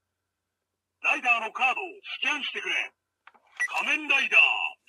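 A toy card-reading game machine plays voice and sound effects through a small speaker.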